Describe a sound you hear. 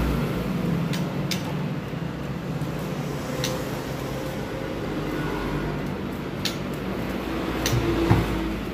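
A small bird hops inside a cage, its feet tapping sharply on the perches.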